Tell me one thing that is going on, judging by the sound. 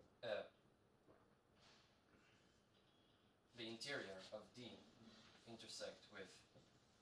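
A young man speaks calmly, as if lecturing.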